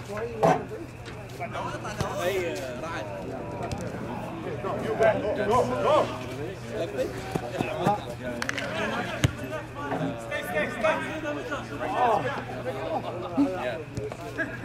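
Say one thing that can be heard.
Men shout and call to each other across an open field.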